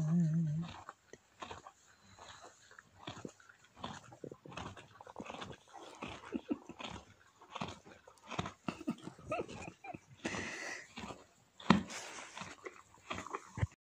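Straw rustles and crackles as a foal shifts its head.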